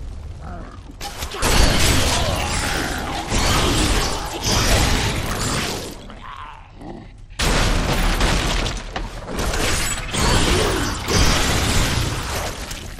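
Fiery spell blasts roar and crackle in bursts.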